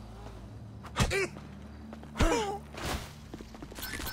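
Fists land punches with heavy thuds.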